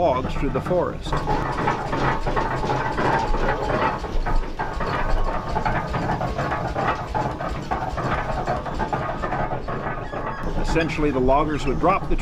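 A winch creaks and clanks as it is turned.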